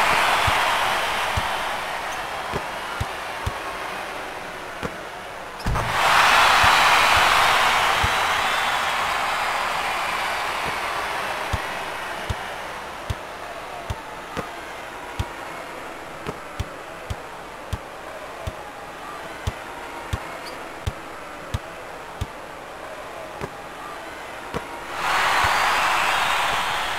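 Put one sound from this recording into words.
A basketball bounces on a hard court in sharp, steady thuds.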